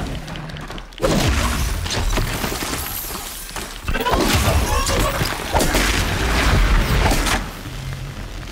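Arrows strike a robotic creature with loud crackling bursts.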